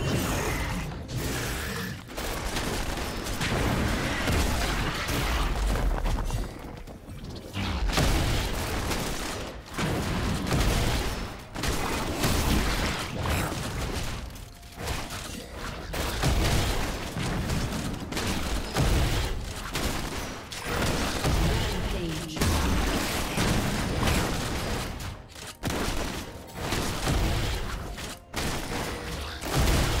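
Game combat effects clash and thump.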